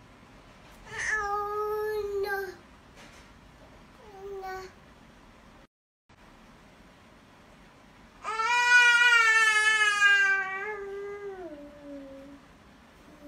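A toddler squeals and babbles loudly up close.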